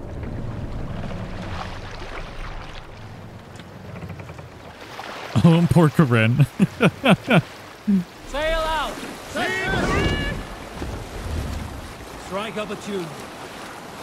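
Oars splash rhythmically through water.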